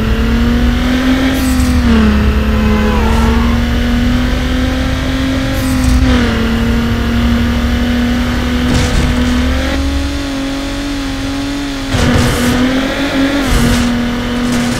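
A car engine roars steadily at high speed, shifting gears now and then.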